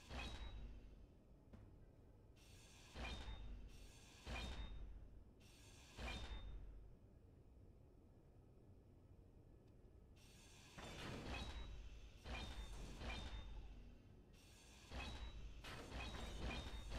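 A welding tool buzzes and crackles in short bursts.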